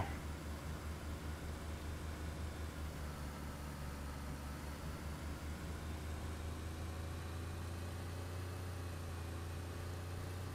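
A car engine hums steadily at a low pitch while driving.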